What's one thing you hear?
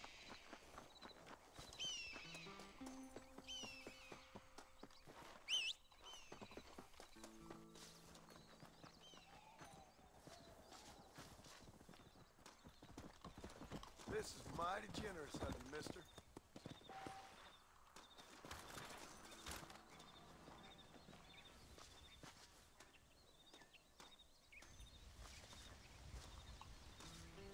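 Footsteps run over dry grass.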